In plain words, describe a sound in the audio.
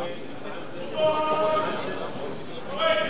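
A man shouts loudly from the crowd.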